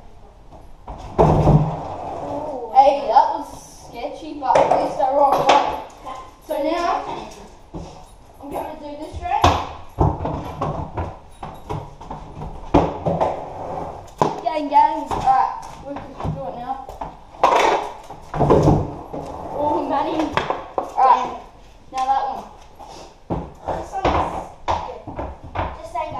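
Skateboard wheels roll and rattle on a concrete floor.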